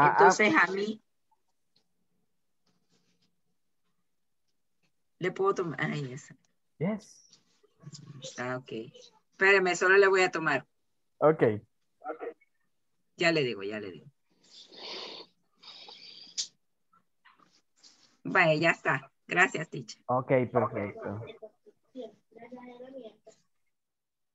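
A woman speaks over an online call, reading out.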